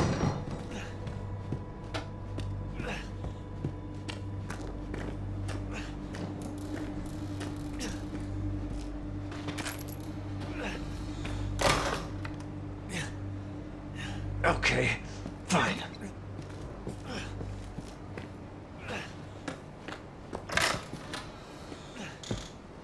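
Footsteps creak on a wooden floor.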